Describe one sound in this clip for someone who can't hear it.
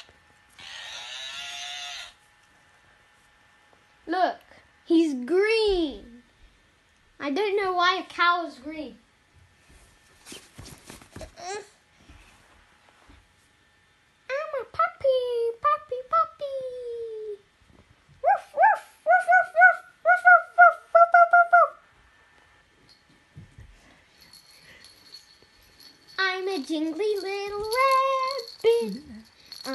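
A baby giggles and coos happily close by.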